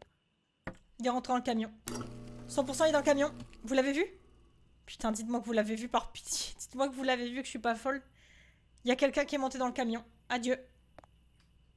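A young woman talks and laughs with animation, close to a microphone.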